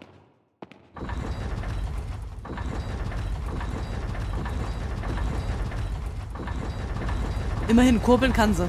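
A heavy metal crank grinds and rumbles as it turns.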